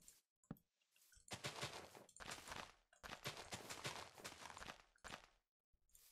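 Blocks of earth crunch as they are dug and placed.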